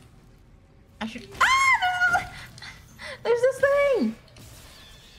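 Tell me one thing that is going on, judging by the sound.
A young woman squeals and exclaims in a high voice, close to a microphone.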